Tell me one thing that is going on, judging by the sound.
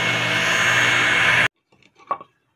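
A power saw whines loudly, then cuts off.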